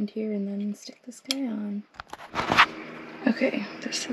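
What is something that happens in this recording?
A coin clicks against a hard plastic disc.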